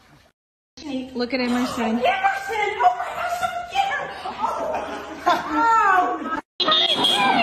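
A woman shrieks and exclaims with excitement.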